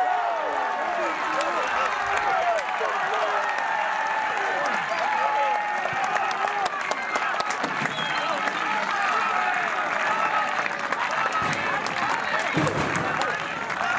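A crowd of men and women cheers and shouts loudly outdoors.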